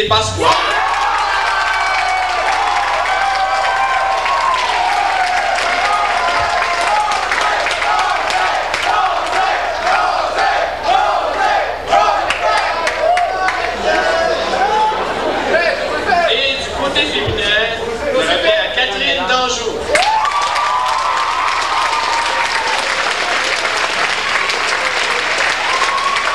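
A crowd claps and cheers loudly in a large echoing hall.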